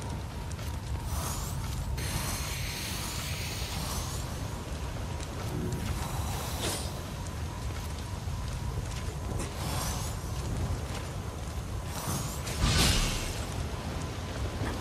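Sword blades swish and clash.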